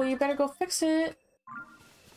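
A short chiming tune plays.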